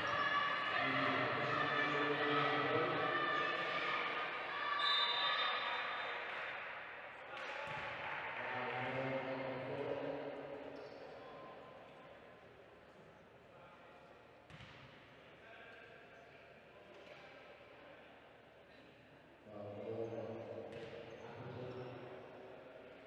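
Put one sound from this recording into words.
A crowd of spectators murmurs in a large echoing hall.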